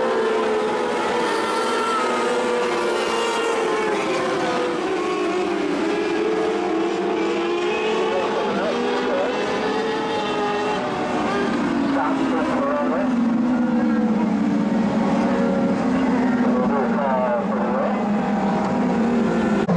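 Several race car engines roar loudly, rising and falling in pitch as the cars speed by.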